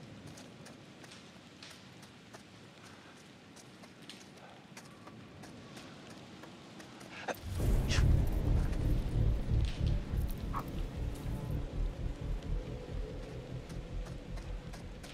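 Footsteps run quickly over leaves and dirt.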